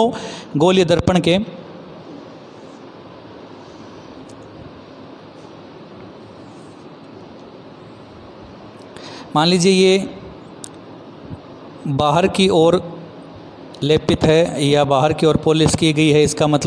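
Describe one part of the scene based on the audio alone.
A man speaks clearly and steadily into a close microphone, explaining in bursts.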